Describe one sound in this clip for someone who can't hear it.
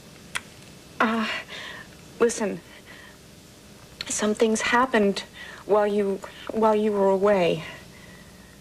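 A young woman speaks close by in a tearful, pleading voice.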